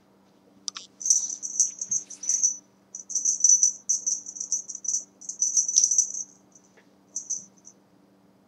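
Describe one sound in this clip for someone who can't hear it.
A toy on a wand jingles as it is shaken.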